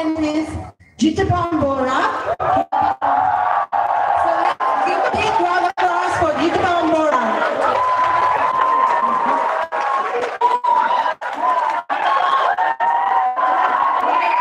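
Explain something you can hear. Music plays loudly over loudspeakers in a large echoing space.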